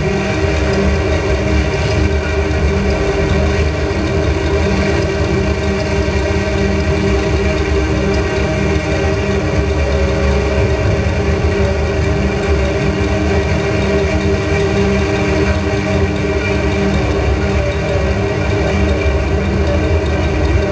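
Loud electronic music drones and throbs steadily from loudspeakers.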